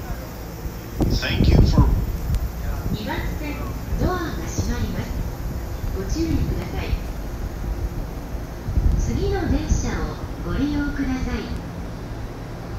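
A crowd of people murmurs and talks nearby.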